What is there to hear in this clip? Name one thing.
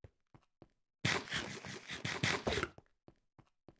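Someone munches food with loud crunching bites.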